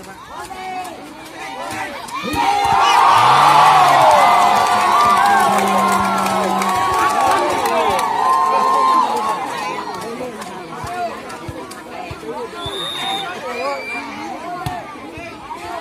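A volleyball is hit with sharp smacks.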